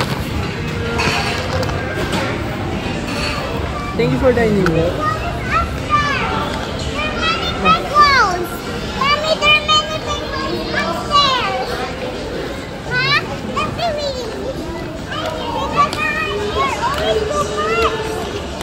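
Indistinct crowd chatter murmurs in a large echoing hall.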